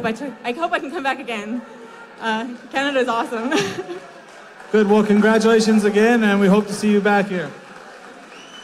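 A man announces loudly and with drawn-out words over a loudspeaker in a large echoing hall.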